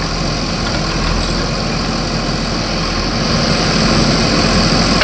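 A digger's bucket scrapes and crunches through rubble.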